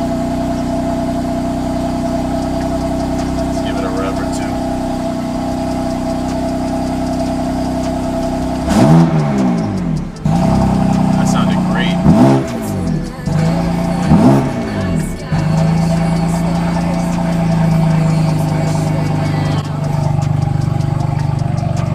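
A car engine idles with a deep, steady rumble close by.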